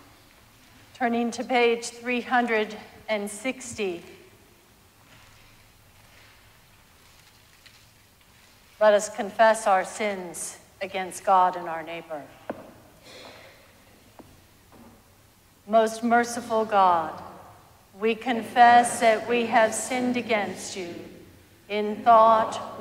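A woman speaks slowly and calmly through a microphone in a large echoing hall.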